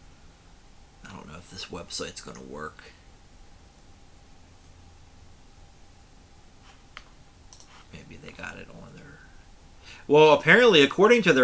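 A man speaks casually into a nearby microphone, in short bursts with pauses.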